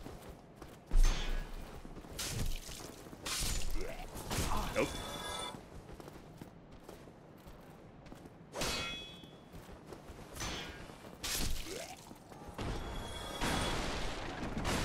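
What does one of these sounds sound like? Sword blows clang and thud during a fight.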